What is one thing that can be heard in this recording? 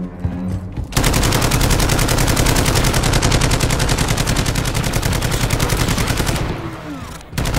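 A submachine gun fires in rapid, rattling bursts nearby.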